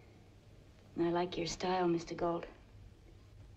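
A woman speaks softly and warmly, close by.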